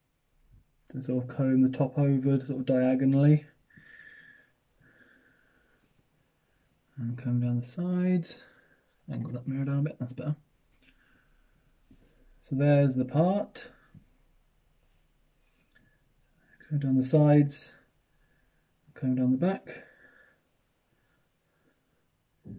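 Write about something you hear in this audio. A comb scrapes through hair.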